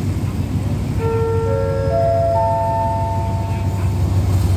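A train horn sounds a loud chord.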